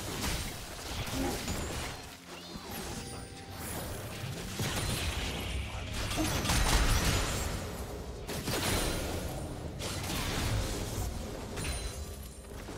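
Video game spell effects whoosh, crackle and clash during a battle.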